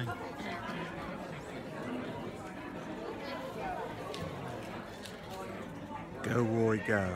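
An audience murmurs and chatters in a large hall.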